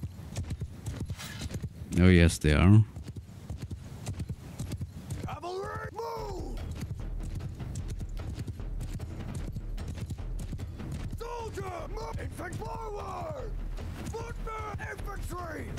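Horse hooves thud steadily on grass.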